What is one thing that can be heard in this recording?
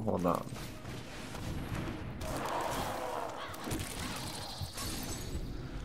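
Magical shimmering effects whoosh and sparkle.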